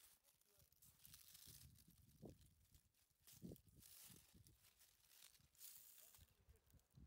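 Leaves rustle as hands push through dense vines.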